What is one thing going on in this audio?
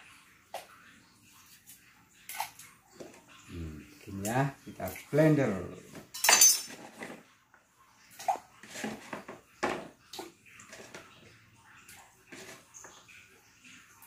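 Dishes clatter in a rack.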